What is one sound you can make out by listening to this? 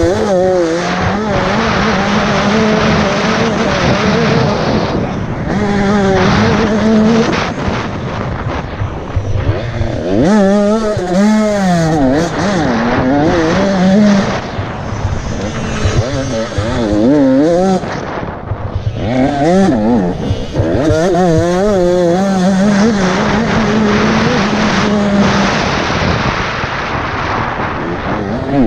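A dirt bike engine roars and revs up and down close by.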